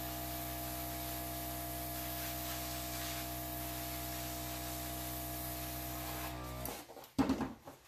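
A small gas torch hisses steadily and then cuts off.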